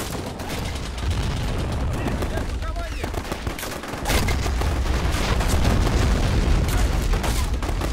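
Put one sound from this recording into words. Explosions boom with a deep, rolling rumble.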